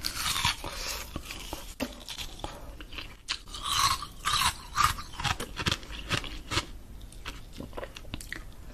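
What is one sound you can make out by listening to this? A woman crunches and chews something crisp close to a microphone.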